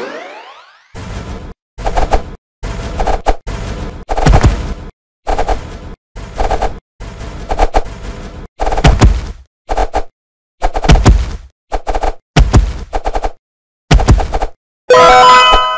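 Cartoon fighters clash with heavy thuds and hits in a game.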